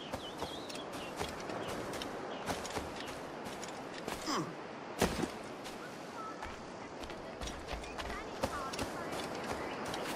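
Footsteps run quickly over grass and soft ground.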